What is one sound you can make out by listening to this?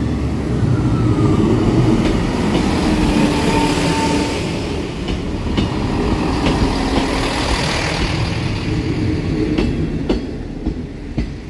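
A level crossing alarm beeps steadily.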